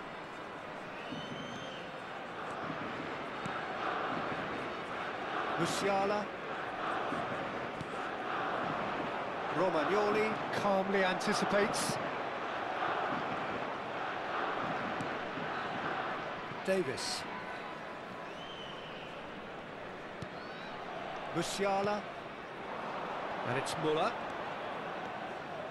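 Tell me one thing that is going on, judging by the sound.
A large stadium crowd roars steadily throughout.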